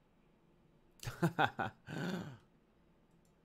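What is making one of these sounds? A young man exclaims briefly into a close microphone.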